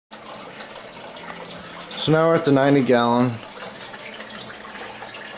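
Air bubbles fizz and gurgle steadily in water.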